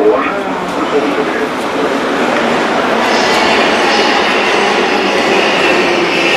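A metro train rumbles and hisses along an echoing platform.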